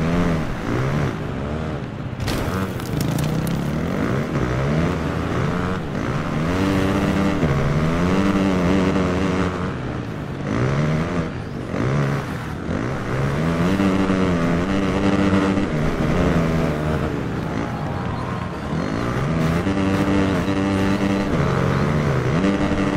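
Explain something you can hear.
A motorcycle engine revs up and down again and again.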